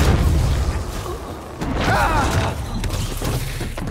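A man falls and thuds onto a metal floor.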